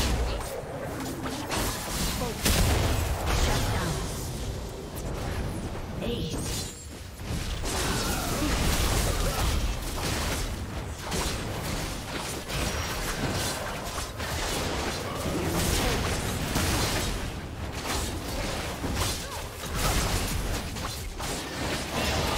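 Video game spells blast and crackle as a battle rages.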